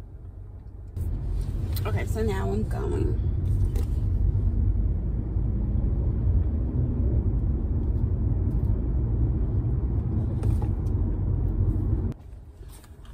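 A car engine hums with a low, steady rumble.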